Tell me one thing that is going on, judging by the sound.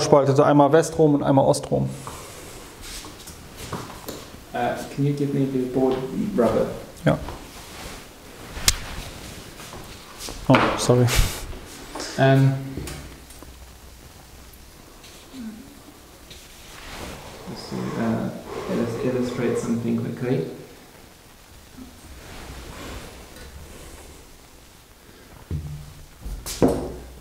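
A second man answers calmly nearby.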